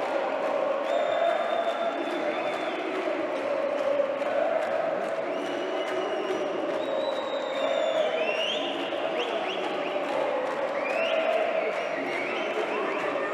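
A large crowd cheers and chants loudly in a big echoing arena.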